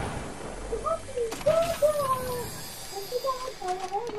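A treasure chest creaks open.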